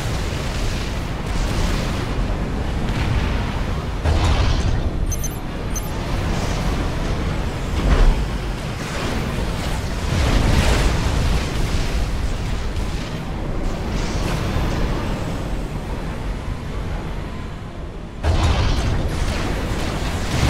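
Explosions boom and rumble over and over in a battle.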